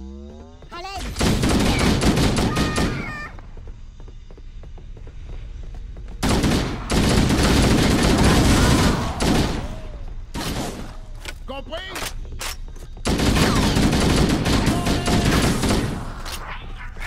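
Automatic gunfire rattles in loud, rapid bursts.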